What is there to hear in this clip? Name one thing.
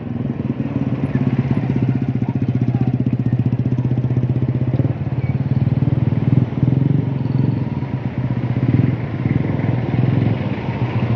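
A motorcycle engine idles close by with a fast, rough putter.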